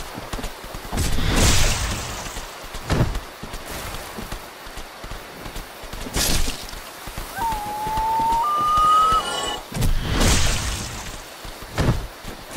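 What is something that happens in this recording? A sword slashes and strikes a creature with heavy thuds.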